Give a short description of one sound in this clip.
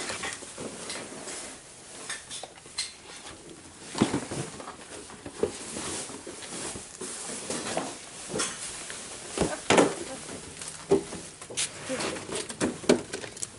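Cardboard boxes rustle and knock as they are carried.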